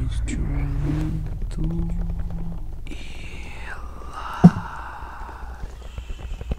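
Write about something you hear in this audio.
Hands rub and brush against a microphone close up.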